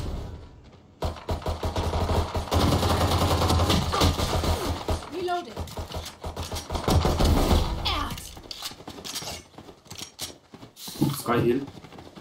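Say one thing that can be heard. Rapid gunshots crack and echo.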